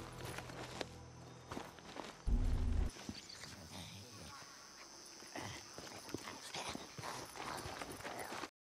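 Footsteps crunch on dry ground and grass.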